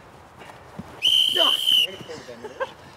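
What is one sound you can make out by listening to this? A man blows a sharp whistle outdoors.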